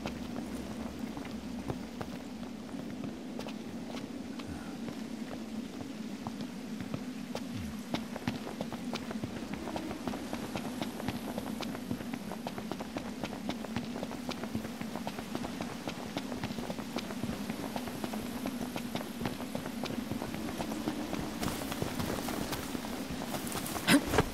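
Footsteps run quickly over dirt and grass.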